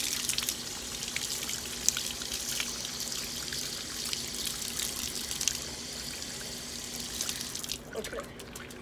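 A brush scrubs under running water.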